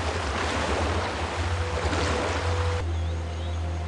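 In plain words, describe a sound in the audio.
Water splashes as a swimmer paddles.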